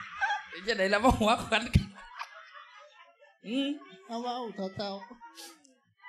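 A crowd of women laughs loudly.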